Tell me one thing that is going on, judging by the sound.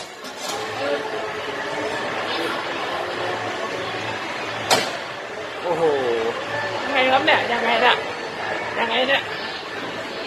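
A steady din of arcade machines and chatter fills a busy hall.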